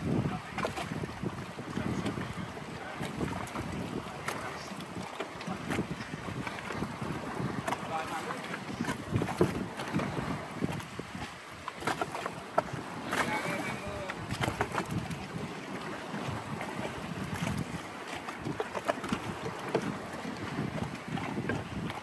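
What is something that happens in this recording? Waves splash and lap against rocks.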